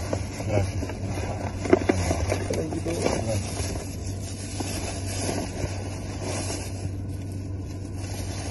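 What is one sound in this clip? A man talks nearby in a low voice.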